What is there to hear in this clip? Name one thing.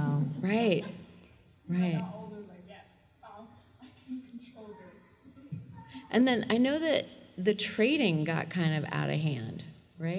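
A young woman laughs into a microphone.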